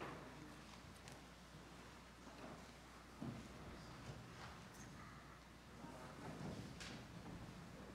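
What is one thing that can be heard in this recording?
A crowd of people murmurs and shuffles in a large echoing hall.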